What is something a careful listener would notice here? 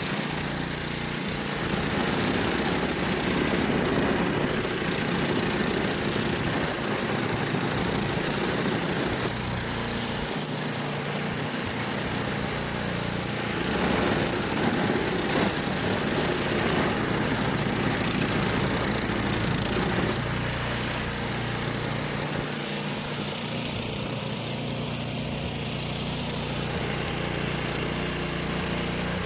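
Snow sprays and hisses from a snowblower's chute.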